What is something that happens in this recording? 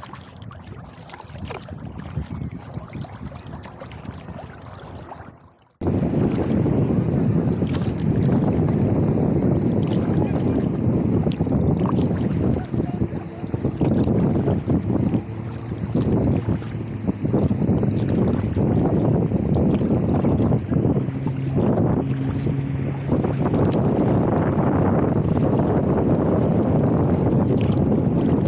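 Water laps and splashes against a plastic kayak hull.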